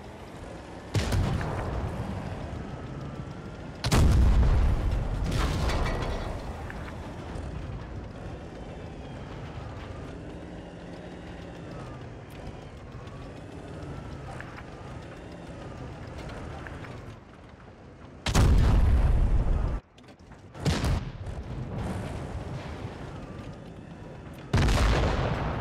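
Tank cannons fire with loud booming blasts.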